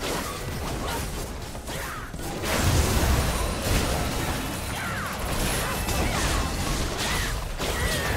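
Magic spells burst and crackle in a chaotic battle.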